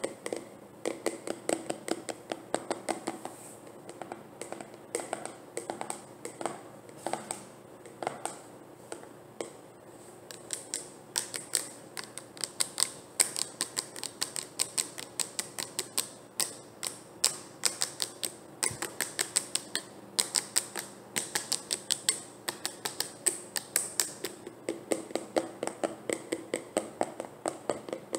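Fingernails tap rapidly on a plastic jar.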